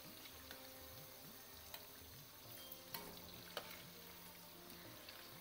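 Oil sizzles and crackles steadily as fritters fry.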